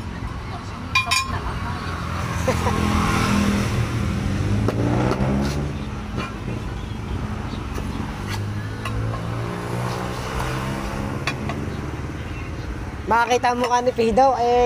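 A metal tyre lever scrapes and clicks against a wheel rim.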